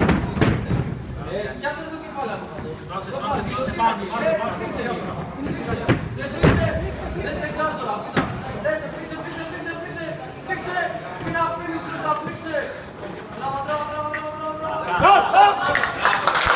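Young men shout and cheer nearby.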